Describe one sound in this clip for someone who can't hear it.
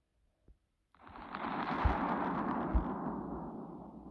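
An explosion roars and slowly fades.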